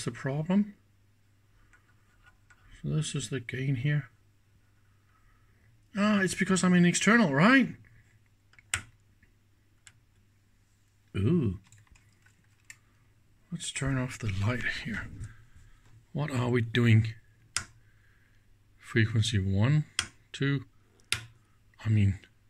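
Knobs click as they are turned.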